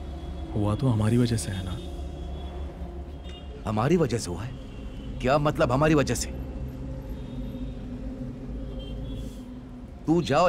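A middle-aged man speaks in a low, tense voice nearby.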